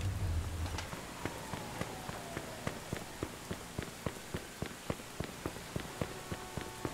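Quick footsteps run on pavement.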